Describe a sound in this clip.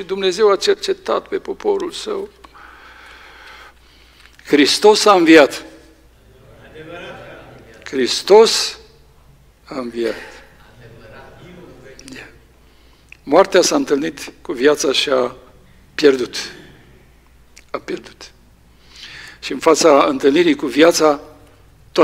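An older man reads out calmly through a microphone in an echoing hall, with pauses.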